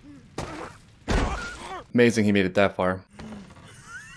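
A young man exclaims loudly in surprise.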